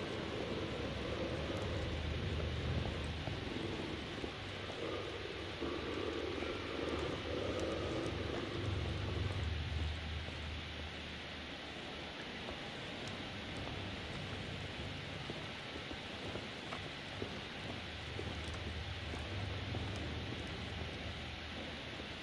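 Footsteps scuff slowly over a gritty floor.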